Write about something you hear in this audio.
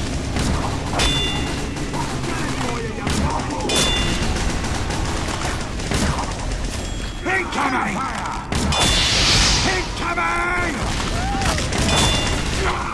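A bow string twangs as arrows are loosed, again and again.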